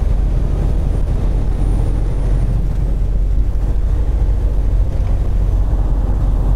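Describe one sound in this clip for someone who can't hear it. Tyres roll over a snowy road.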